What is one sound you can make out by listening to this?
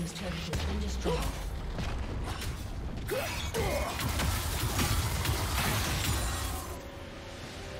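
Game battle effects crackle, whoosh and clash in quick bursts.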